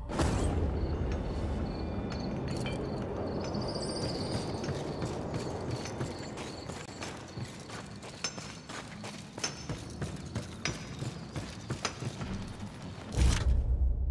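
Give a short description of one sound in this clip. Footsteps patter quickly on wooden boards.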